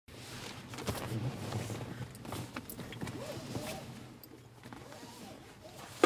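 A young man speaks quietly and closely.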